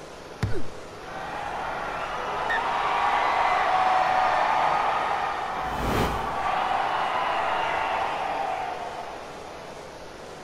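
A stadium crowd cheers loudly, then dies down.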